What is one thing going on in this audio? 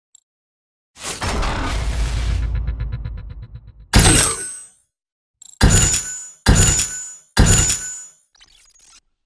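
Game reward sounds play with loud swooshes and chimes.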